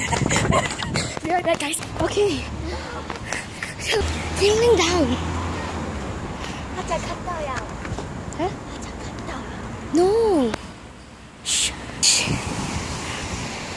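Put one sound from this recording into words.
A young girl laughs close to the microphone.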